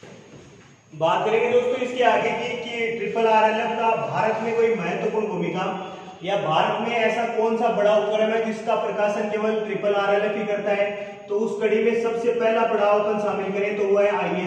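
A young man speaks steadily and clearly, close to a microphone.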